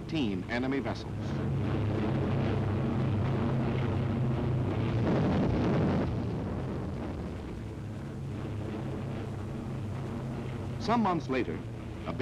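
Aircraft engines drone steadily overhead.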